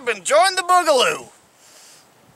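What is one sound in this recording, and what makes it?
A man speaks animatedly and close up, outdoors.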